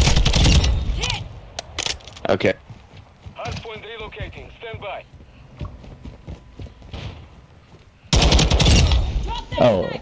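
Rapid gunfire rattles in sharp bursts.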